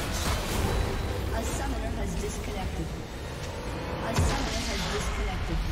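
Video game spell effects crackle and clash in a busy fight.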